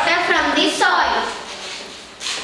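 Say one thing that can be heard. A child speaks out loudly in a room.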